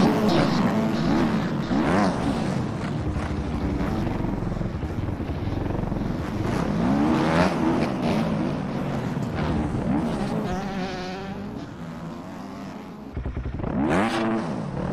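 A motocross bike engine revs up and down, rising and falling in pitch.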